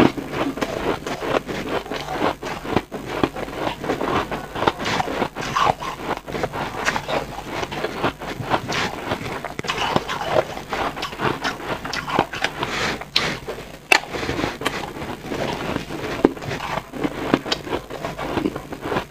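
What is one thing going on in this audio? Ice crunches loudly as a young woman chews it close to a microphone.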